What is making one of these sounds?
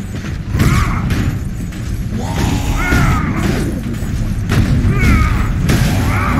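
Game fighters clash with heavy blows and thuds.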